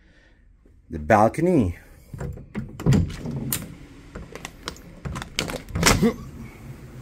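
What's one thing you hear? A sliding glass door clicks and rumbles open.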